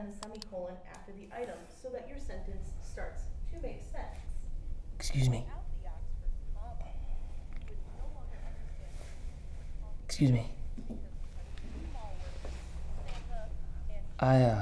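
A young man speaks quietly and calmly nearby.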